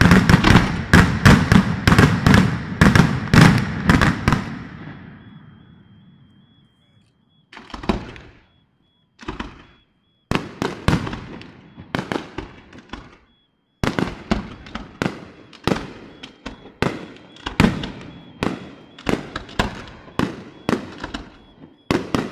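Fireworks burst with loud rapid bangs and crackles.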